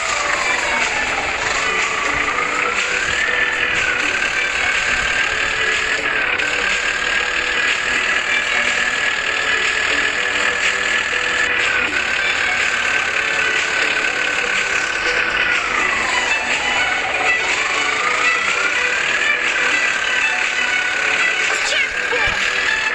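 A truck engine hums and its pitch rises and falls as the truck speeds up and slows down.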